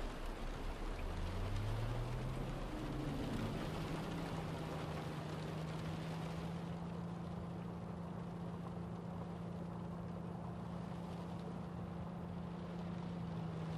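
A car engine revs up and then hums steadily while driving.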